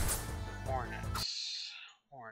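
Lively game music plays and cuts off abruptly.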